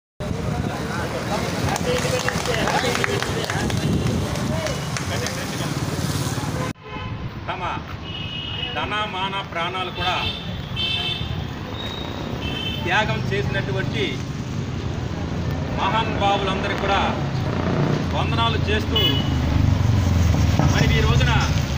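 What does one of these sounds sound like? A group of men sing together outdoors.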